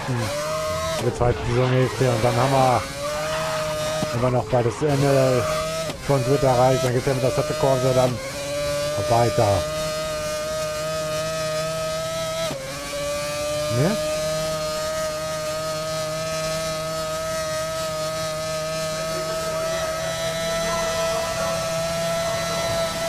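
A racing car engine screams at high revs, shifting gears up and down.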